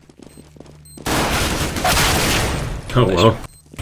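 Gunshots ring out in a rapid burst.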